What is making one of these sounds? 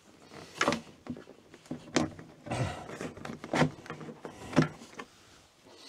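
Light knocks and clicks sound as a man handles a cupboard panel.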